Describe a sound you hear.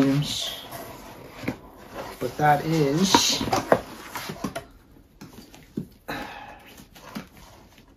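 Cardboard and packaging rustle as a man opens a box.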